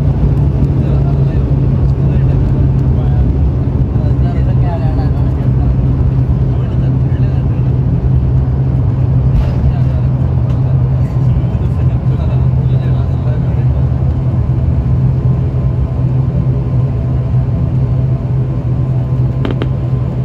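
A jet engine roars steadily and loudly inside an aircraft cabin.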